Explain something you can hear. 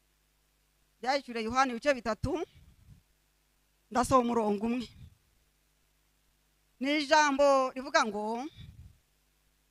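A middle-aged woman speaks slowly and clearly into a microphone, in short phrases with pauses.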